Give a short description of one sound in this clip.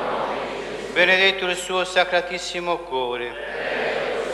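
A middle-aged man chants through a microphone, heard close up.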